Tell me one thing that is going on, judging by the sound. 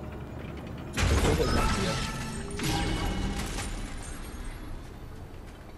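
A bright game fanfare swells and fades.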